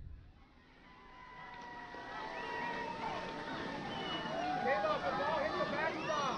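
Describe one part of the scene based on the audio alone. A crowd of spectators shouts and cheers outdoors, growing louder.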